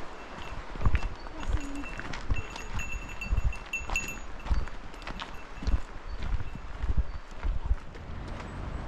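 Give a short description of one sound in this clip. Footsteps crunch on a gravel trail.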